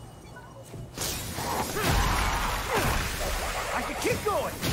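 A magical blast bursts with a loud crackling roar.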